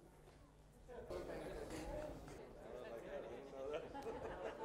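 Many men and women chatter at once around the room.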